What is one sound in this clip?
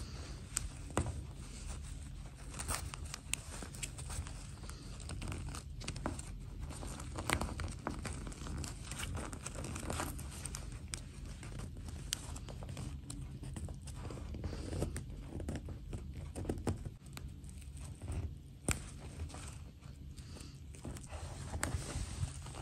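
Thin fabric and plastic rustle and crinkle close by as fingers handle them.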